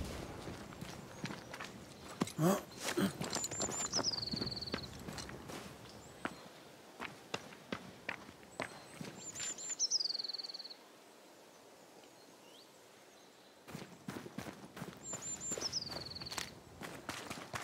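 Footsteps crunch on gravel and rock.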